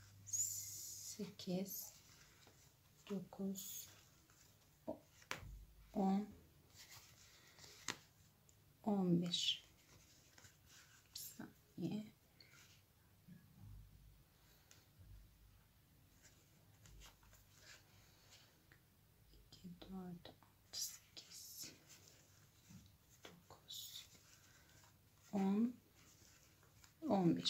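A crochet hook pulls yarn through stitches with a soft rustle.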